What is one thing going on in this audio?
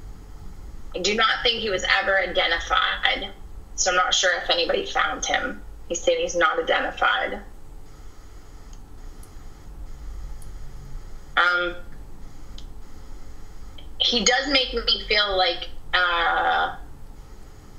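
A woman speaks with animation over an online call.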